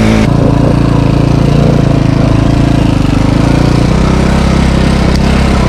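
Another dirt bike engine drones a little way ahead.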